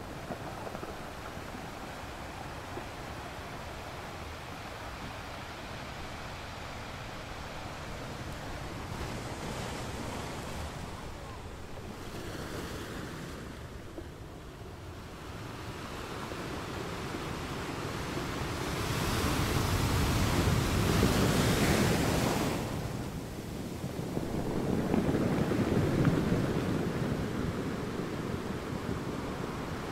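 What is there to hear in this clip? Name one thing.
Water washes and hisses over rocks.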